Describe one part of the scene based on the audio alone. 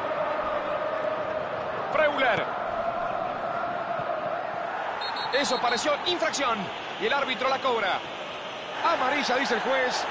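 A large stadium crowd murmurs and chants steadily.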